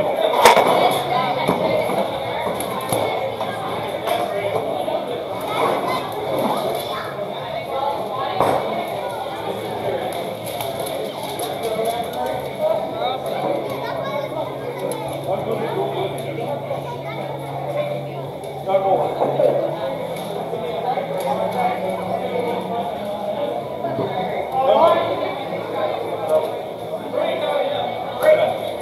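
A crowd of spectators chatters and cheers in an echoing hall.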